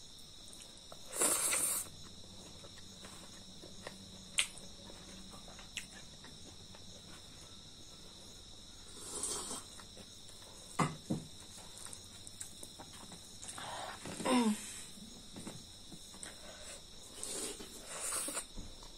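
A young woman chews and smacks her lips close by.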